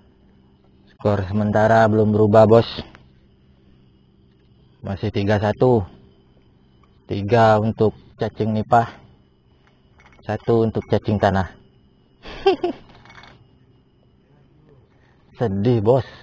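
A man talks up close, calmly and with pauses.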